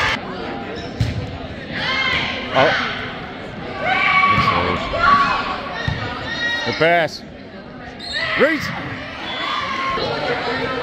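A crowd cheers and chatters.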